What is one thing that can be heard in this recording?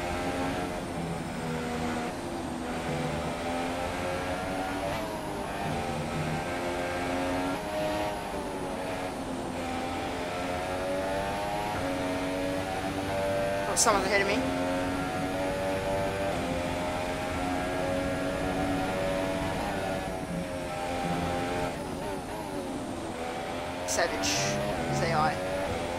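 A racing car engine screams at high revs, rising and falling as gears shift.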